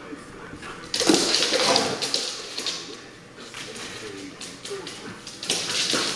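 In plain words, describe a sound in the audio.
A dog barks loudly and sharply nearby.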